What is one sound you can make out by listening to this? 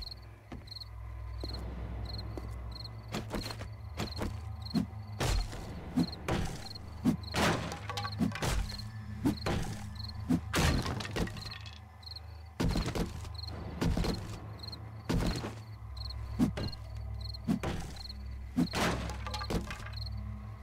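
A pickaxe strikes wood with repeated sharp knocks.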